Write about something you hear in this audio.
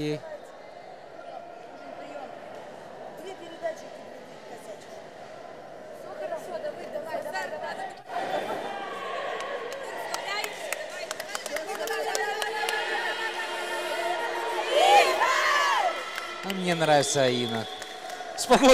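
Young women talk and cheer together, echoing in a large hall.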